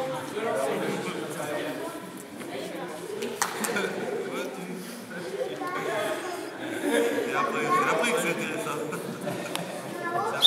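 Young women and men call out and talk across an echoing hall.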